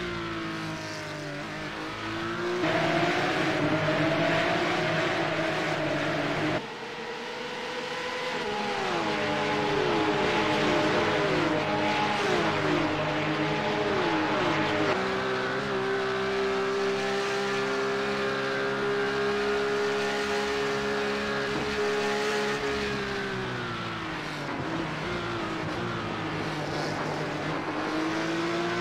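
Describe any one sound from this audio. Racing car engines roar and shift gears throughout.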